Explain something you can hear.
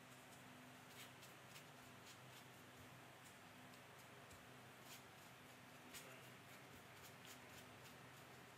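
A paintbrush dabs and brushes across watercolour paper.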